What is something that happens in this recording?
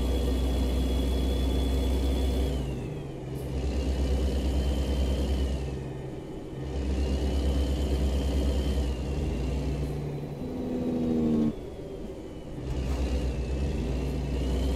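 A truck engine rumbles steadily, rising and falling as it changes gear.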